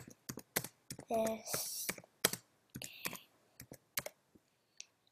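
Keys clack on a keyboard in quick bursts.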